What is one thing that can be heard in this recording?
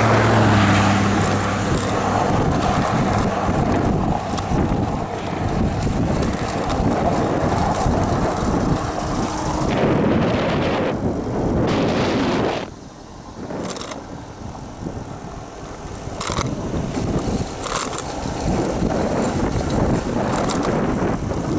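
Bicycle tyres hum on asphalt.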